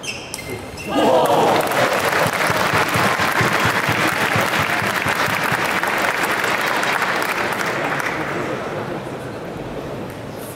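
A crowd in a large hall cheers and applauds loudly, then fades.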